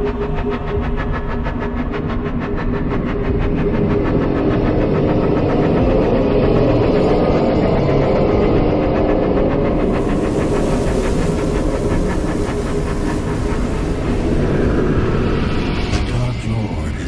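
A glowing beam of energy hums with a deep, swelling roar.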